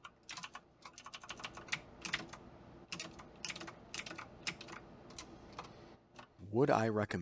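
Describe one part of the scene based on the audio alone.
Mechanical keyboard keys clack rapidly under typing fingers.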